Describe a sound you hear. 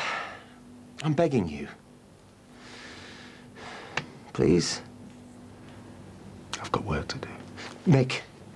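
A man with a deep voice speaks calmly, close by.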